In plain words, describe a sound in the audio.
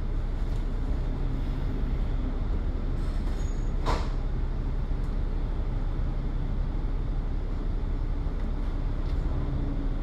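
A double-decker bus roars past close by.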